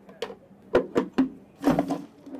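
A plastic blender jar knocks on a counter.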